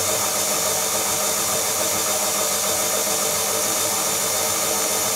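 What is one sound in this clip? An electric stand mixer whirs steadily.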